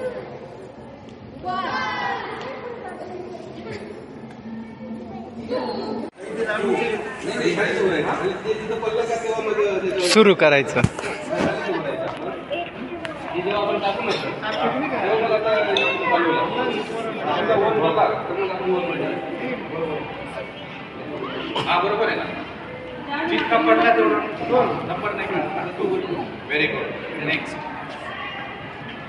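Children chatter in the background.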